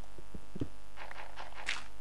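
A pickaxe digs into dirt with soft crunches.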